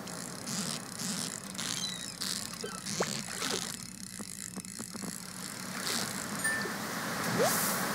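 A fishing reel whirs and clicks as a fish is reeled in.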